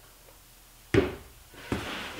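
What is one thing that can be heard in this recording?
A wooden board knocks against another board.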